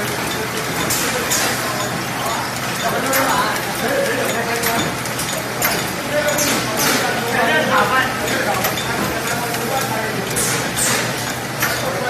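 Pneumatic parts hiss in sharp bursts.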